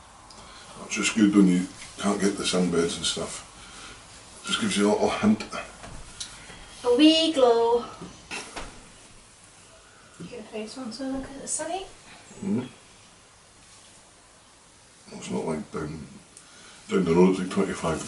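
A man talks casually close by.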